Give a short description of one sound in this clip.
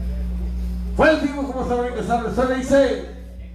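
A band with violin and guitars plays a lively tune.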